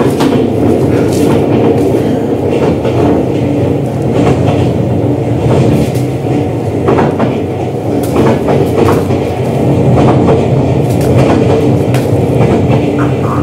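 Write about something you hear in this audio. Bare feet shuffle and step on a hard floor.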